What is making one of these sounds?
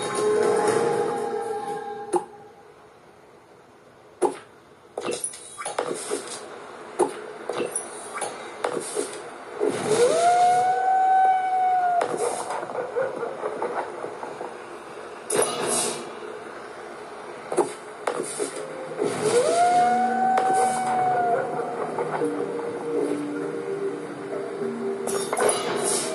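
Short game chimes and clicks play from a small speaker.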